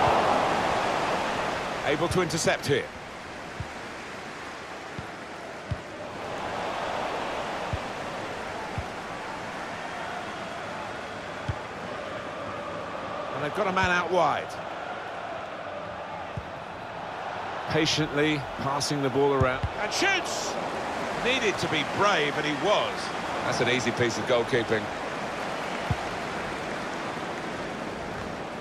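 A large crowd murmurs and cheers steadily in a big stadium.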